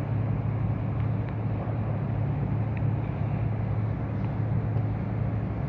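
A diesel locomotive engine rumbles steadily in the distance.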